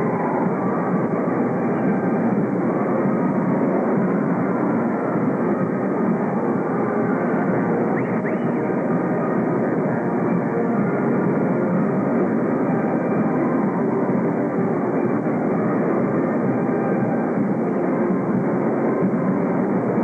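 A marching band plays brass and drums in a large echoing hall.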